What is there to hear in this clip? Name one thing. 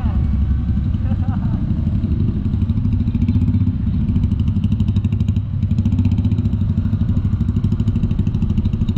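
A scooter engine putters steadily up close.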